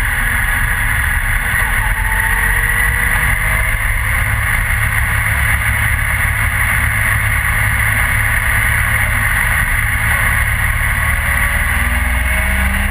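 Wind rushes loudly against a helmet, roaring steadily.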